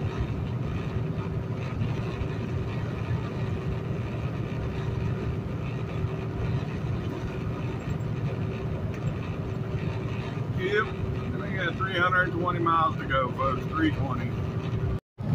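A truck engine drones steadily as the truck drives down a highway.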